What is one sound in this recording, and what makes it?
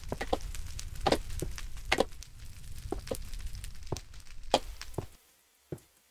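Stone blocks crack with quick taps as they are dug out.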